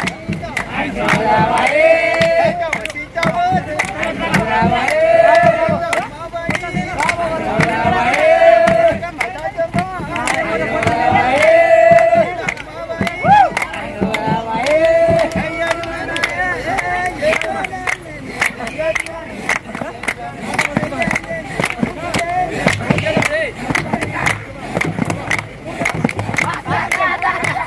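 A crowd of men and women sings together outdoors.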